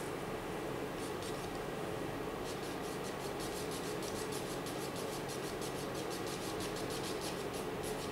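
A pencil scratches on paper in quick, even strokes.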